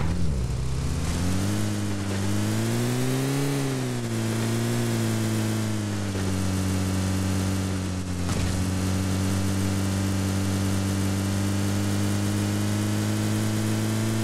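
A heavier car engine drones steadily, rising and falling in pitch as it climbs.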